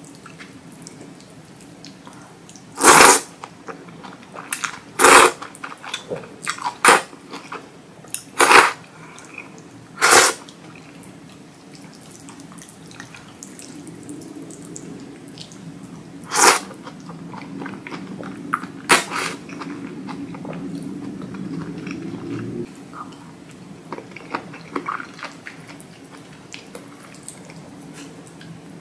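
A young woman chews wet food close to the microphone.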